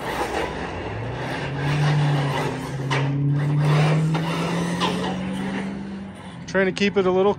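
A small electric motor whines as a toy car speeds across asphalt.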